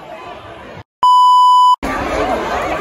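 A test tone beeps steadily.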